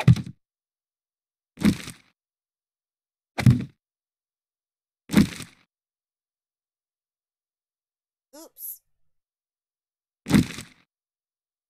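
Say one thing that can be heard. Heavy stone blocks thud one after another.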